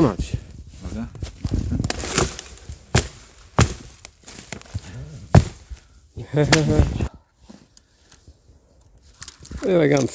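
Boots crunch on snowy ground.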